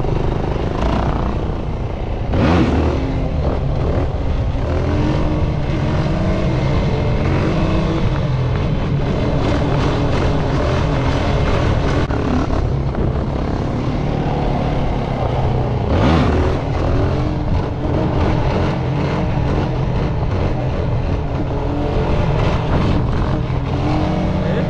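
A quad bike engine roars and revs up and down close by.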